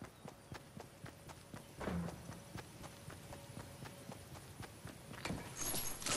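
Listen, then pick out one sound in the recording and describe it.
Quick footsteps thud rhythmically on grass.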